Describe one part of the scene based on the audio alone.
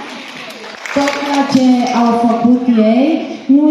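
A woman speaks into a microphone, heard over loudspeakers in a large echoing hall.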